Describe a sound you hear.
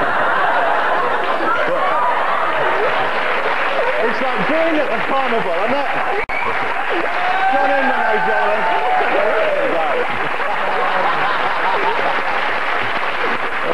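A crowd laughs and cheers loudly in a large room.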